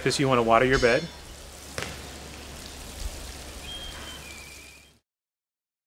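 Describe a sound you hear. Water pours from a watering can onto soil.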